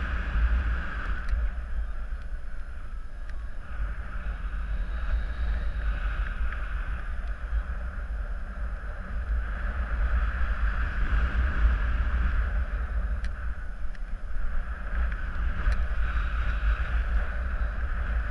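Wind rushes and buffets hard against the microphone, rising and falling in strength.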